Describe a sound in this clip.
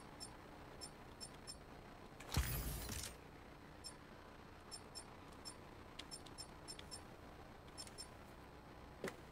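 Soft menu clicks tick repeatedly.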